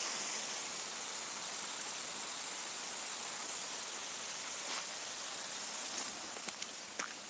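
Water hisses as it sprays from a small leak in a pipe.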